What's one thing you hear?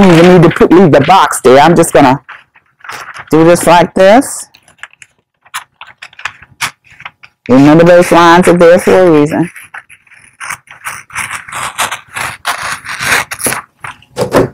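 Scissors snip through wrapping paper.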